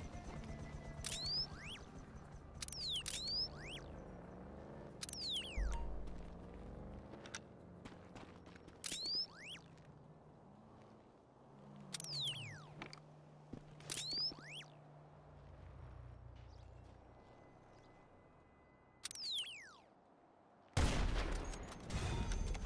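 A rifle fires sharp, loud shots.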